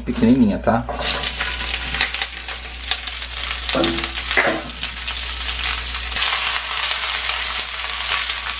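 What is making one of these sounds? Cabbage leaves sizzle and crackle in a hot pan.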